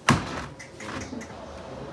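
Dough thumps and slaps on a wooden table.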